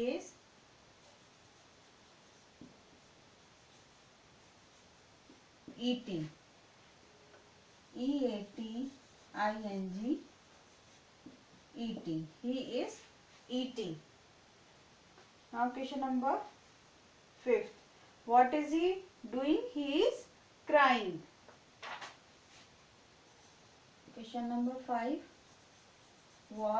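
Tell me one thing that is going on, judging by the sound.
A woman speaks clearly in a teaching manner, close by.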